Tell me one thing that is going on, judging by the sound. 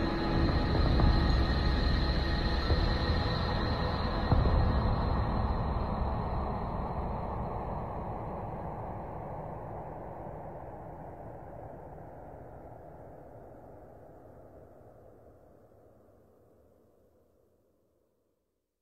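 Synthesizer music plays in a wide, lush wash and slowly fades out.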